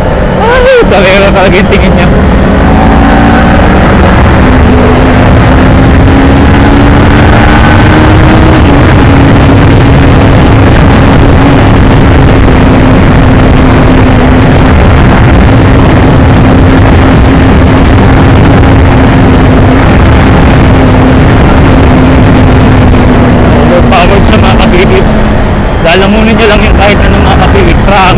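A parallel-twin sport bike engine drones at speed.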